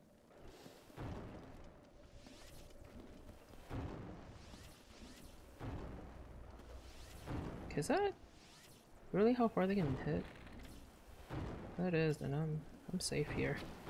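Fiery explosions boom in a video game.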